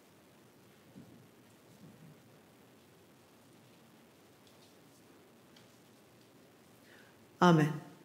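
A middle-aged woman speaks calmly into a microphone, with long pauses.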